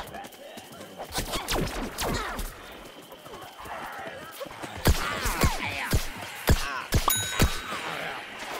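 Game shots fire in quick bursts with sharp pops.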